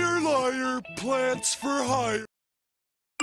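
A man's cartoonish voice groans loudly.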